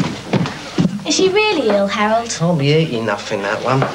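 A young man speaks.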